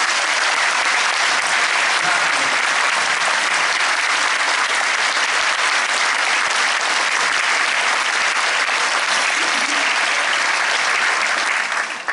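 An audience applauds loudly in a large hall.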